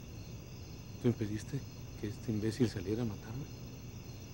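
A man speaks tensely, close by.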